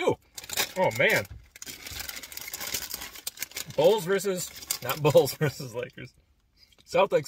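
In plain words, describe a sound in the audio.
A crinkly chip bag rustles.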